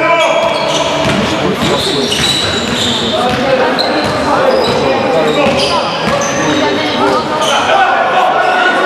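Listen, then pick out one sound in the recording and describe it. A crowd of young people shouts and calls out across an echoing hall.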